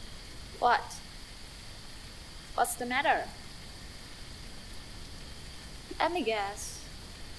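A young woman speaks in short, questioning phrases.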